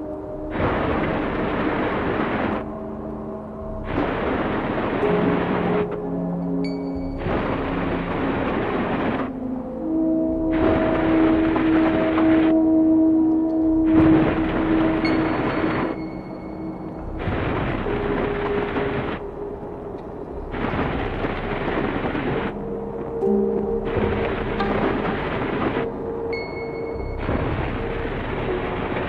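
Electronic music plays from synthesizers and drum machines, with noisy bursts in a steady rhythm and sustained tones.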